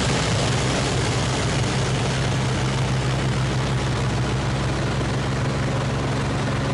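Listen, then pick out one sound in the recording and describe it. Air rushes loudly past an aircraft canopy.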